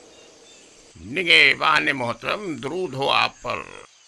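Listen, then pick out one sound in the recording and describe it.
A man speaks loudly and firmly, close by.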